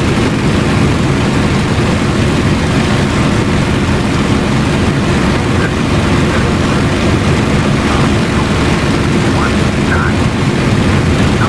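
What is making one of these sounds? Wind rushes past the canopy.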